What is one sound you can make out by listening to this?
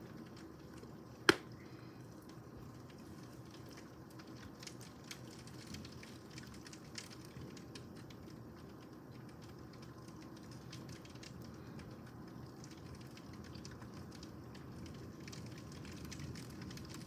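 Steady rain falls outdoors, pattering and splashing.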